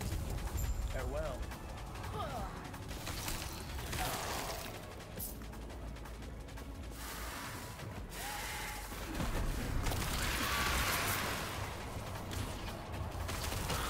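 Magic spells whoosh and crackle in bursts.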